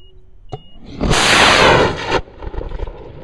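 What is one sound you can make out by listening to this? A rocket motor roars loudly and bursts with a sudden blast.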